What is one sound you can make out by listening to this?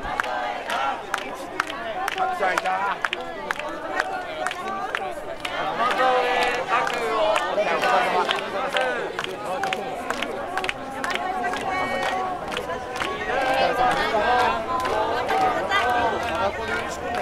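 A crowd of people chatters all around.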